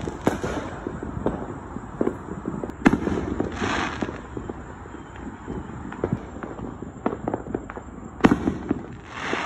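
Firework sparks crackle and pop.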